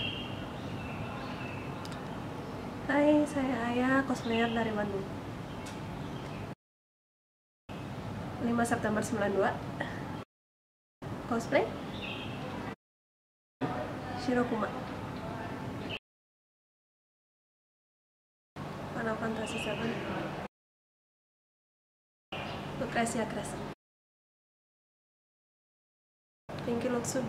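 A young woman speaks calmly into a close microphone, in short answers broken by silent gaps.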